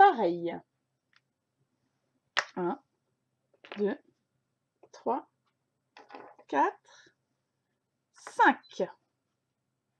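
Plastic bottle caps tap down onto a wooden table.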